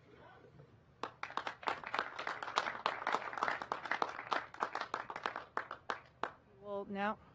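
People applaud outdoors.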